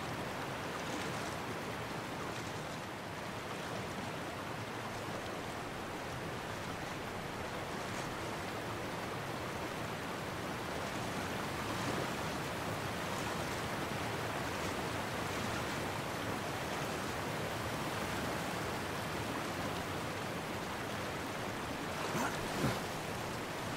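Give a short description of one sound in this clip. A person splashes while swimming through water.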